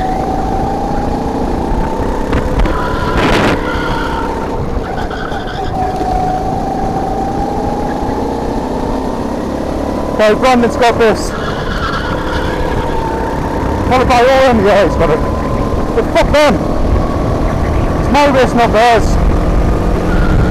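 A go-kart engine whines at speed while racing around a track.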